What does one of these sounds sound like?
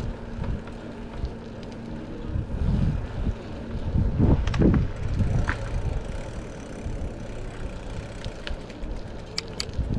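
Wind rushes and buffets loudly against a microphone outdoors.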